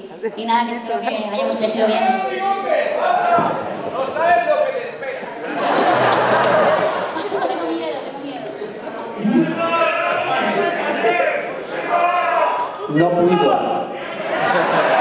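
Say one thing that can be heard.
A man speaks with animation into a microphone over loudspeakers in a large hall.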